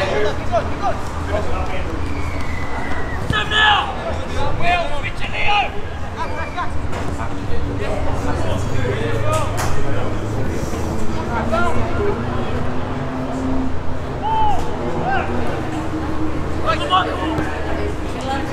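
Young men shout to each other across an open field, at a distance.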